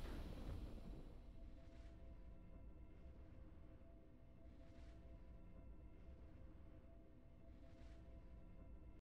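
Soft, steady game music plays quietly.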